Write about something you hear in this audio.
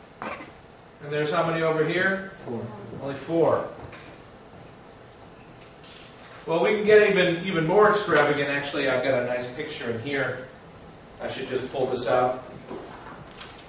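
A middle-aged man lectures calmly through a microphone.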